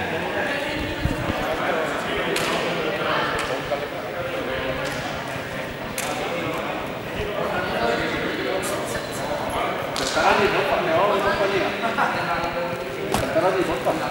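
A ball bounces on a hard floor and rings in a large echoing hall.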